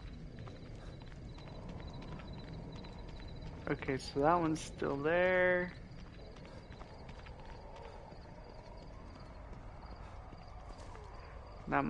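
Footsteps crunch on grass and pavement.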